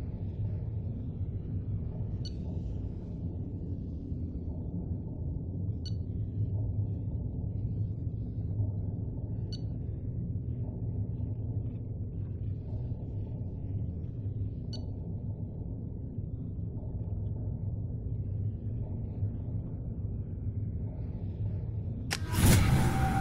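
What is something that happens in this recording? A low electronic drone hums steadily.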